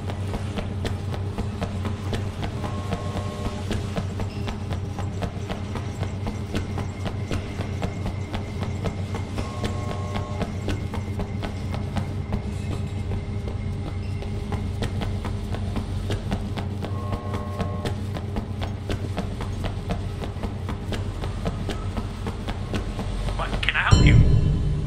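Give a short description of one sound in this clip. Footsteps patter quickly on hard ground as a man runs.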